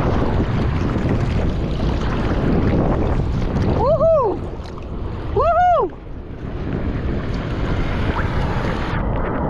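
Hands paddle and splash through water close by.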